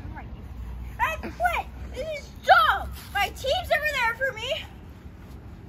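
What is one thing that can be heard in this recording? A young boy talks with animation close by.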